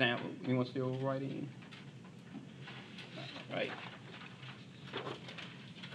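A sheet of paper rustles as it is picked up.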